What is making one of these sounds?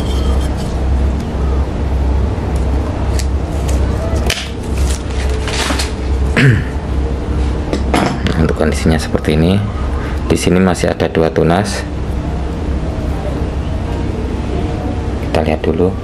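Leaves rustle softly as fingers brush through them.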